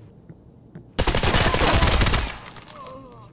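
An automatic rifle fires a loud, rapid burst.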